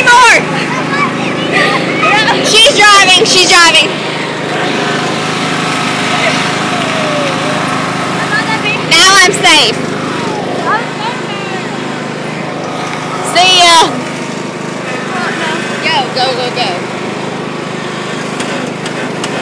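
A riding lawn mower engine hums steadily.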